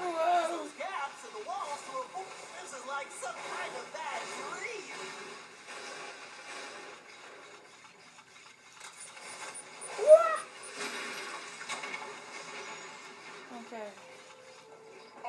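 Video game music and sound effects play from a television.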